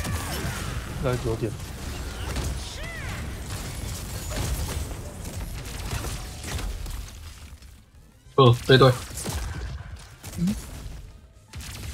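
Game spells and magic blasts whoosh and crackle.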